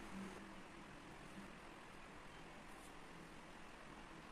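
Sheets of paper rustle softly as they are moved.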